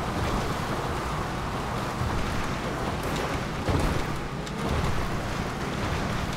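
Tyres crunch and bump over rough ground.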